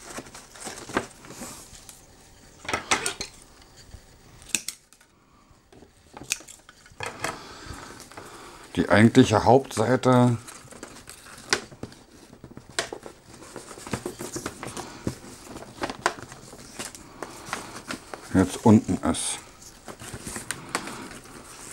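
Wrapping paper crinkles and rustles under hands.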